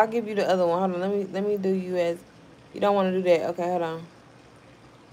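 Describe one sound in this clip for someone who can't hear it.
A young woman sings close to a phone microphone.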